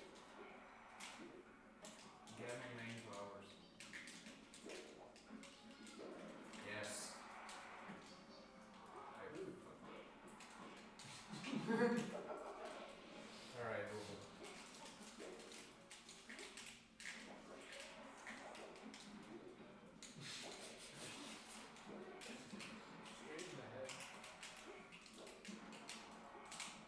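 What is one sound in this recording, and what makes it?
Young men talk and chat casually across a room, heard from a distance.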